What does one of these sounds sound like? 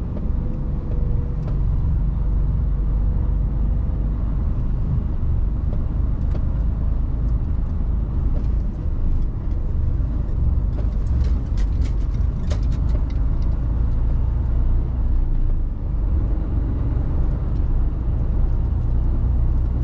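A large vehicle's diesel engine rumbles steadily from inside the cab.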